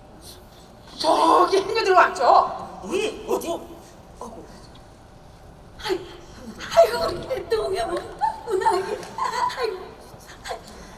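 Men call out loudly with animation in a large echoing hall.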